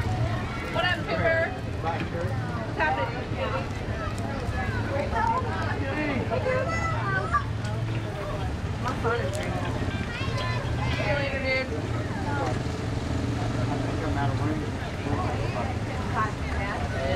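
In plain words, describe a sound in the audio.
Several people talk with animation close by outdoors.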